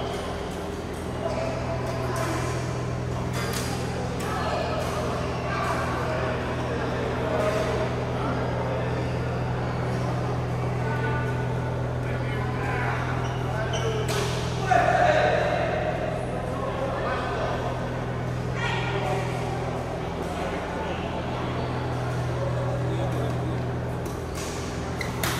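Young men talk and call out across the courts.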